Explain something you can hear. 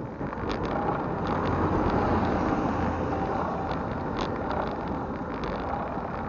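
A truck rumbles past on the road.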